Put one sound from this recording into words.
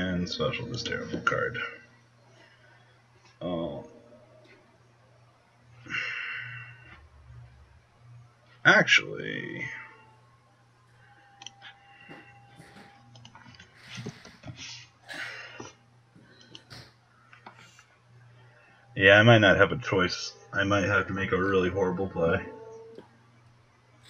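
A young man talks casually into a microphone, in bursts with pauses.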